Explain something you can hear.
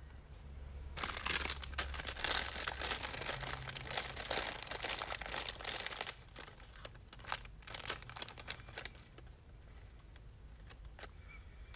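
A plastic sleeve crinkles and rustles as it is handled.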